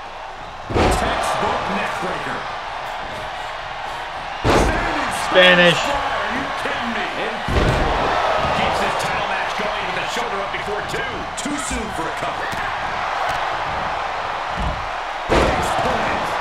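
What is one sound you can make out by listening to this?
Heavy thuds of bodies slamming onto a wrestling ring mat.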